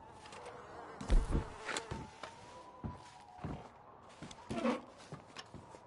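Wooden boxes thud as they are searched.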